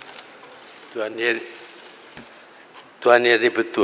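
An elderly man speaks slowly into a microphone.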